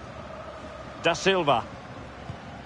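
A referee's whistle blows in a few sharp shrill blasts.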